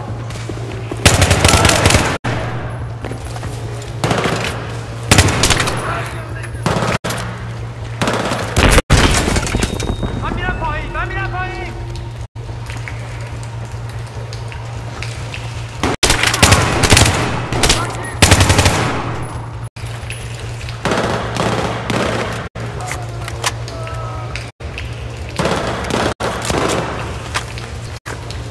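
Gunfire bursts loudly and echoes in a tunnel.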